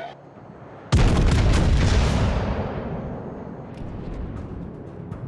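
Heavy naval guns fire with a deep boom that rumbles away.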